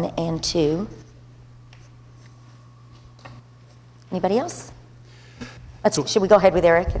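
An older woman speaks calmly into a microphone, with short pauses.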